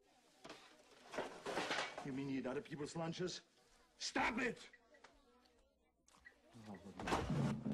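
A man speaks firmly up close.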